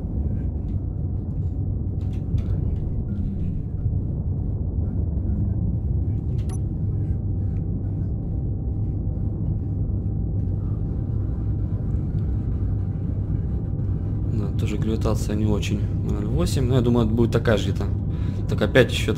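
An engine hums low and steady.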